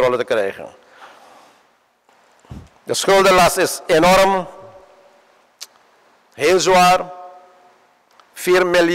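A middle-aged man speaks slowly and formally into a microphone in an echoing hall.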